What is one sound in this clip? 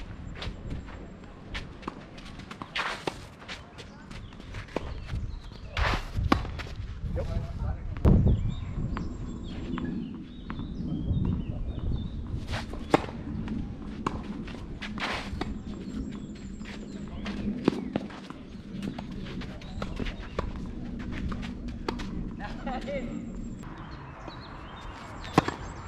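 A tennis ball bounces on a clay court.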